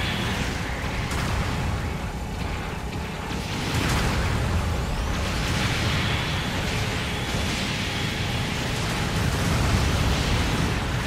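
A heavy robot's thrusters roar steadily.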